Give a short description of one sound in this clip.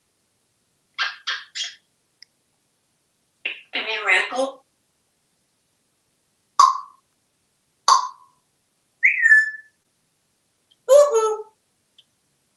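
A parrot chatters and mimics speech in short bursts close by.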